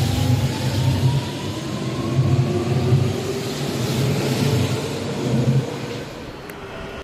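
A train rumbles loudly past at close range.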